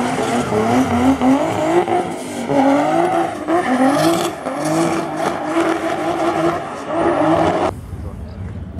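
Tyres squeal on tarmac.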